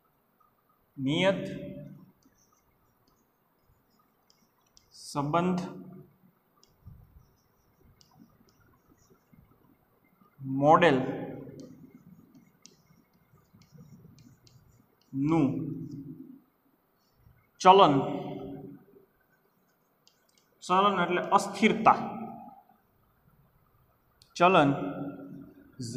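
A man speaks calmly in short bursts, close to the microphone.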